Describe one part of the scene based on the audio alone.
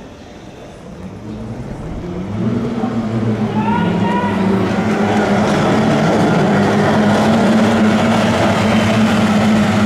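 Racing boat engines roar loudly as the boats speed off.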